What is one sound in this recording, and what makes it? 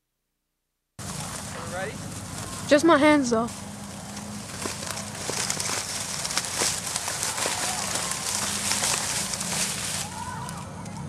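Dry reeds rustle and crackle as something pushes through them.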